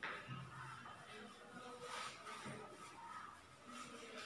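A cloth duster rubs softly across a chalkboard.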